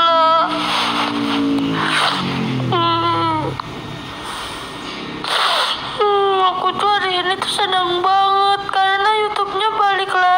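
A young woman sobs close to a phone microphone.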